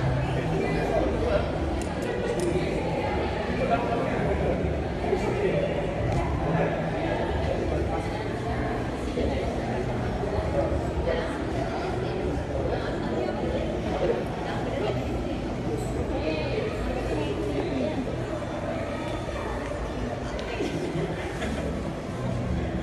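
People murmur in the background of a large echoing hall.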